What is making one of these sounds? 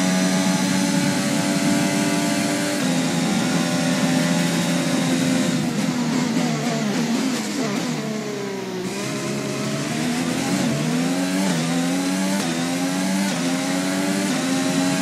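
A racing car engine screams at high revs, dropping in pitch as it slows for a corner and rising again through the gears.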